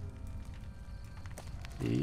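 A fire crackles in a barrel.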